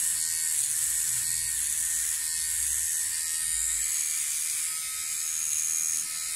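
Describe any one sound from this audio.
An electric trimmer buzzes steadily, close by.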